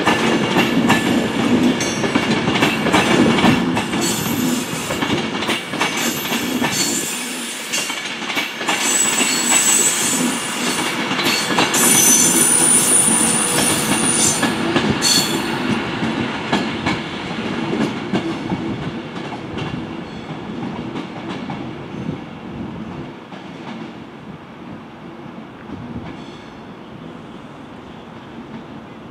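A train rumbles and clatters along the rails close by, then fades.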